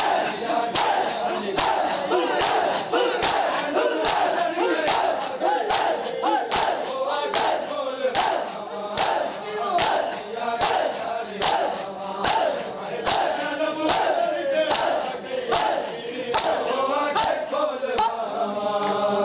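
Many men beat their bare chests in a steady rhythm with loud slaps.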